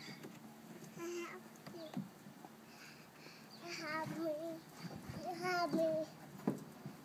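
A toddler babbles nearby.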